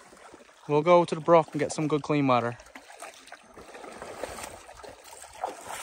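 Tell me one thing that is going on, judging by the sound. Water splashes as a man wades in a shallow lake.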